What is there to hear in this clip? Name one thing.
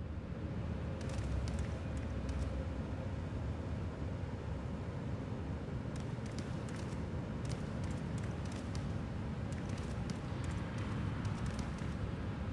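Footsteps clatter on a metal floor.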